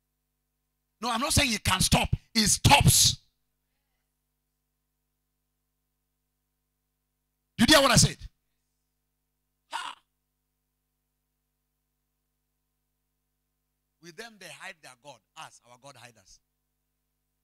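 A man preaches with animation through a microphone, in bursts with long pauses.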